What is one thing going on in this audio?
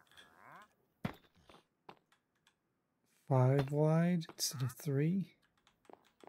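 Blocks are set down with short knocks.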